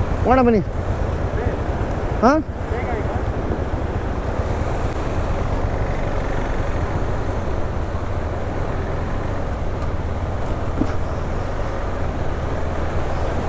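Water rushes and roars over a weir nearby.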